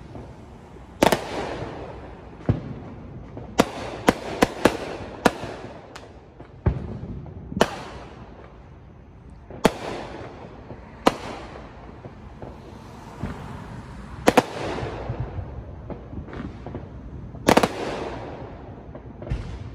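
Fireworks crackle after bursting.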